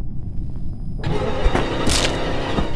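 A sudden loud slashing burst strikes.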